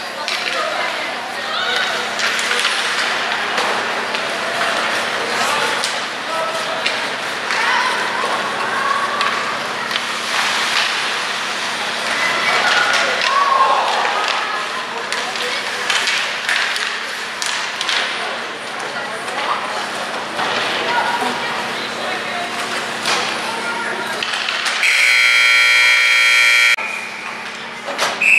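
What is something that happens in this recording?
Hockey skates scrape and carve on ice.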